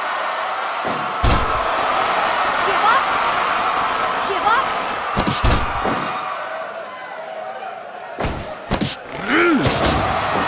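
A crowd cheers and murmurs steadily in a large arena.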